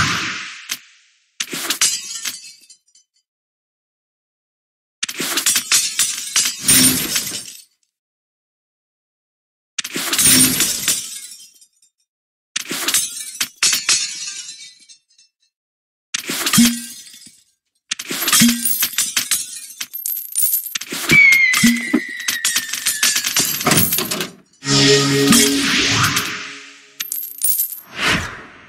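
Game gems match and burst with chiming, sparkling bursts of sound.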